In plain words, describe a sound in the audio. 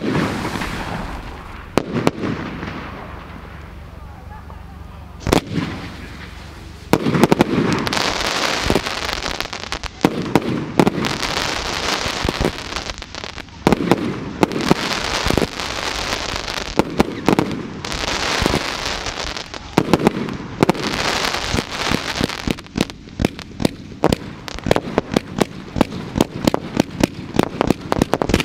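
Fireworks burst overhead with loud bangs and crackles.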